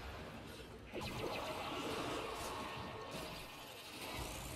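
A blade slashes and strikes with sharp hits.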